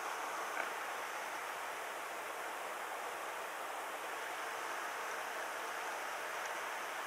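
Water rushes and hisses steadily beneath a moving boat.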